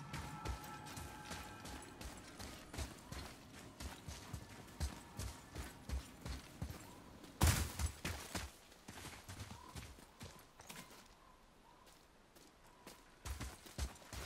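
Heavy footsteps crunch on gravel and stone.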